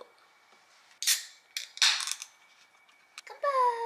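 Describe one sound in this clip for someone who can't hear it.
A can pops open with a fizzing hiss.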